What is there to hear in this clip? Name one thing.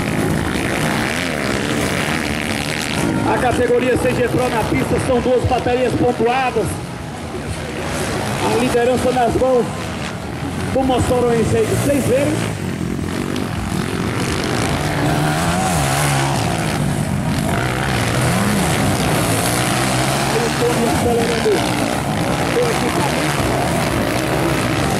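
Motorcycle engines rev and whine as they race past.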